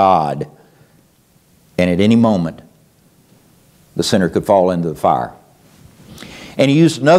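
An elderly man speaks with emphasis through a microphone, in short bursts with pauses.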